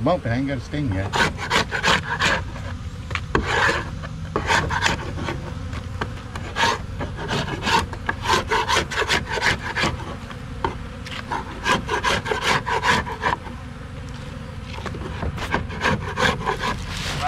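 A knife scrapes and taps on a wooden board.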